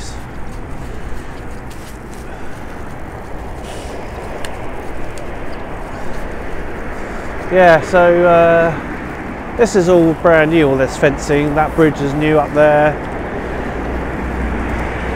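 Bicycle tyres roll on a paved path.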